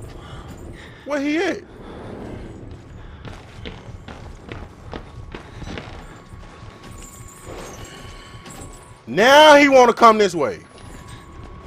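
A young man shouts in sudden loud bursts, close to a microphone.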